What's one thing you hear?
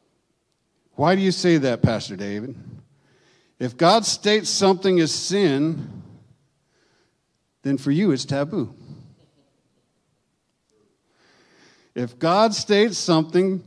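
An older man speaks with feeling into a microphone, in bursts with pauses between.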